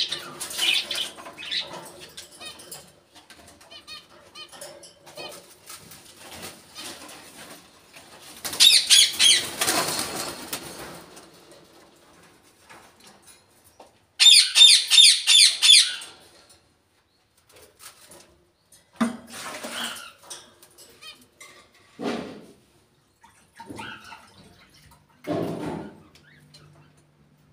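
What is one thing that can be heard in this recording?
A parrot squawks and chatters loudly nearby.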